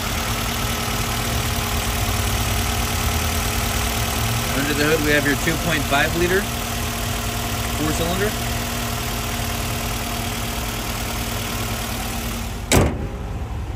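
A four-cylinder petrol car engine idles.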